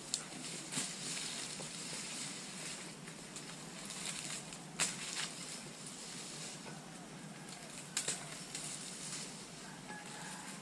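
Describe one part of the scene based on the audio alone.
Wind rustles through leaves outdoors.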